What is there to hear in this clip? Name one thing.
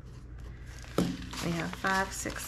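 Paper money rustles as bills are counted.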